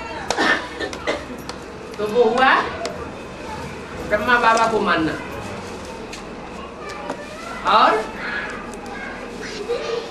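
An elderly man speaks calmly in short phrases, close by.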